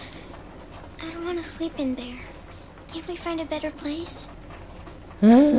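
A young girl speaks softly and anxiously.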